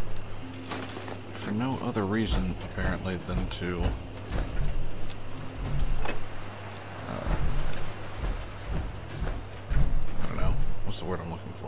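Heavy metal footsteps thud and clank steadily.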